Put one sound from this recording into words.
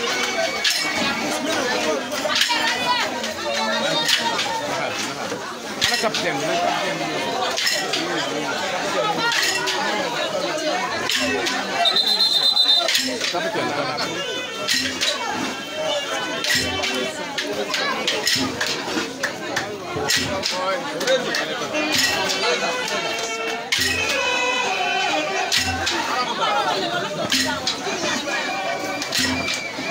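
A crowd of young men and women chatter loudly close by.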